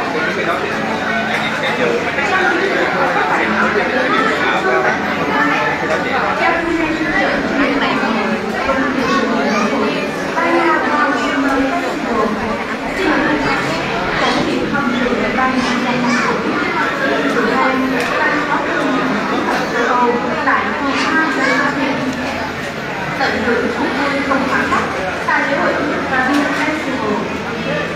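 A crowd of adults chatters close around.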